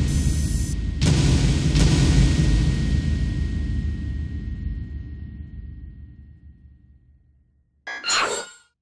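A deep booming game sound hits and slowly fades away.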